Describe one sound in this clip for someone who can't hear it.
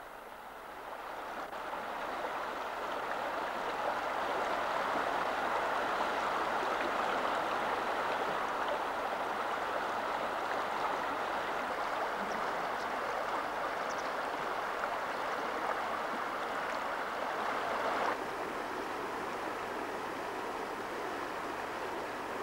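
Water rushes and churns loudly over rocks.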